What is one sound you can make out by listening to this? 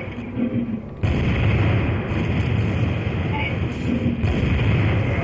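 A sniper rifle fires single loud shots.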